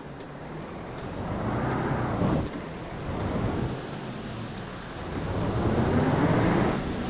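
A bus engine revs up and pulls away, rising in pitch.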